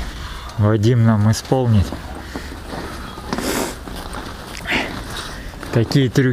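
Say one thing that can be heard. A man speaks close by in short bursts.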